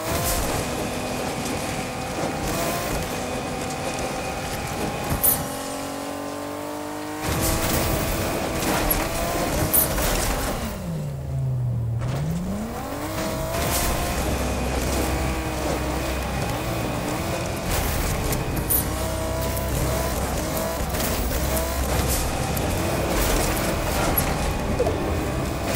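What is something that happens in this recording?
A car engine roars and revs up and down as it speeds along.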